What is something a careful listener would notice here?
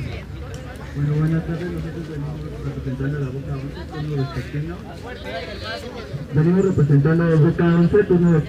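A man speaks loudly into a microphone through a loudspeaker.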